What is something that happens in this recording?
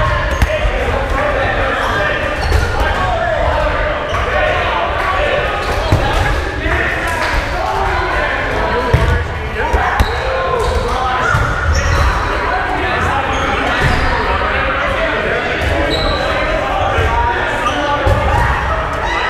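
Rubber dodgeballs smack and bounce on a wooden floor.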